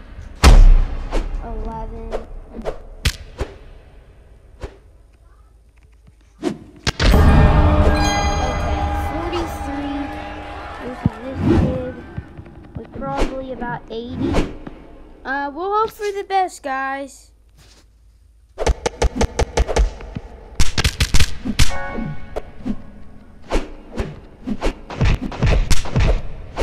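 Punches land with quick, sharp thuds in a game fight.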